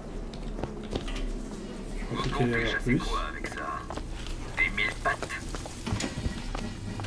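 A young man talks calmly into a close microphone.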